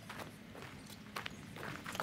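Footsteps crunch on dry soil.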